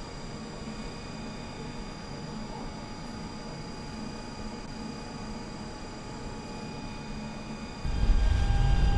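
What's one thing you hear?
A tram motor hums quietly while the tram stands still.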